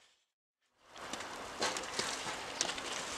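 Dry earth and pebbles rustle under a hand.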